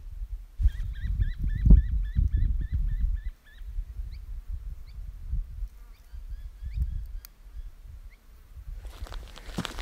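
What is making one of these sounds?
Wind rumbles across open ground outdoors.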